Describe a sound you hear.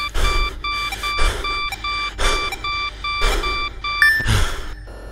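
Short electronic beeps repeat in a quick, even rhythm.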